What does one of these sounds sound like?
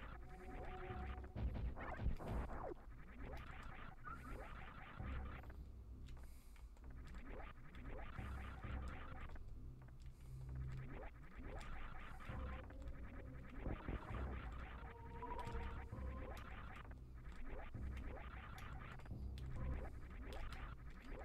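Short electronic zaps and blasts from a video game sound repeatedly.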